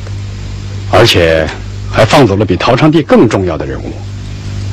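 An elderly man speaks slowly and calmly.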